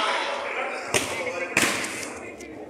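A football thuds off a player's foot.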